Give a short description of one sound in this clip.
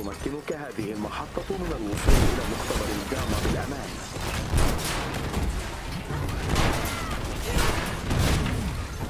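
Heavy blows crash and debris shatters in a loud fight.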